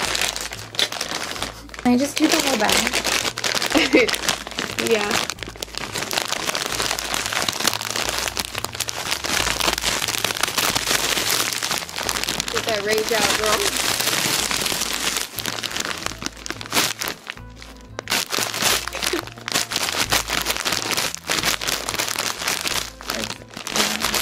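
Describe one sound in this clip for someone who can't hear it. A plastic snack bag crinkles and rustles loudly.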